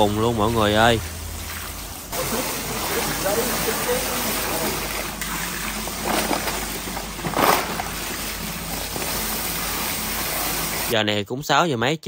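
Water gushes from a hose and splashes into a basket.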